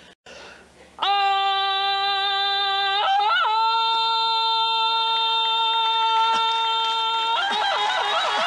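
An older woman sings long, steady held notes, stepping up once in pitch.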